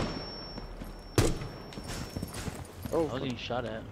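A rifle fires a couple of sharp shots.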